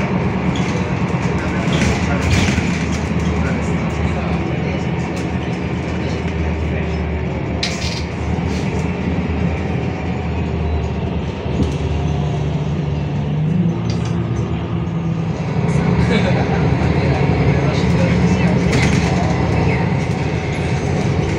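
A bus engine hums and rumbles steadily from inside the cabin.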